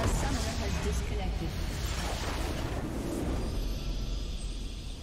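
A huge structure explodes with a loud, rumbling blast.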